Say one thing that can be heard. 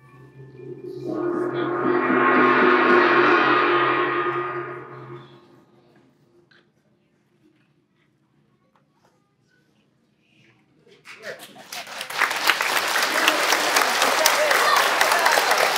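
An audience claps and cheers in a large echoing hall.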